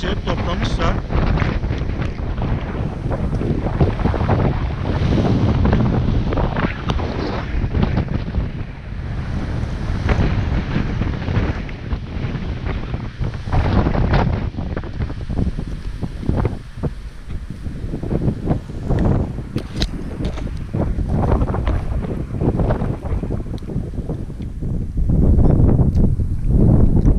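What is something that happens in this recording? Leafy branches rustle and thrash in the wind.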